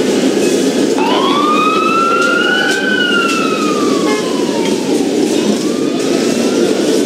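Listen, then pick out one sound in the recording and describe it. An ambulance siren wails briefly, rising and falling.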